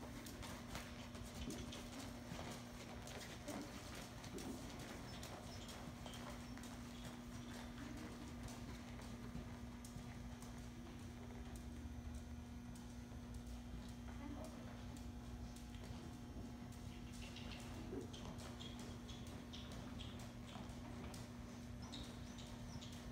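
Hooves thud softly on sand as a horse trots.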